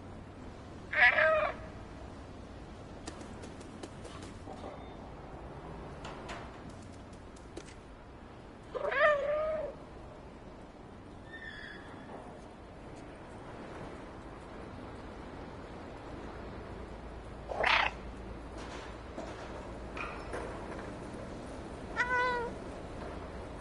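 A cat meows loudly a few times.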